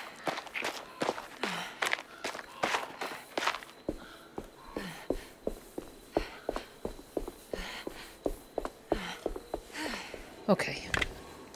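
Footsteps tread steadily on a stone path.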